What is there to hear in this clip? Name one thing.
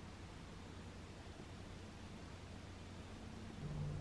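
A cat's tail brushes softly against a carpet.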